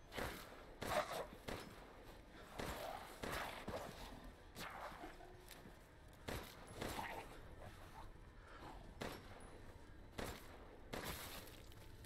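A pistol fires in loud sharp shots.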